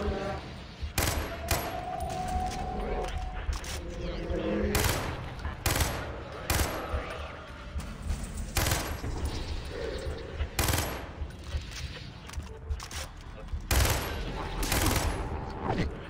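A rifle fires in short, loud bursts.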